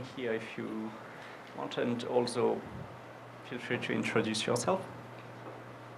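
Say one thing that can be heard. A man speaks into a microphone in a small room, with pauses.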